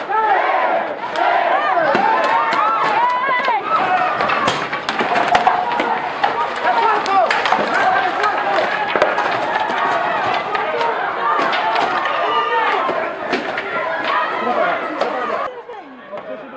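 Batons strike people with sharp thwacks.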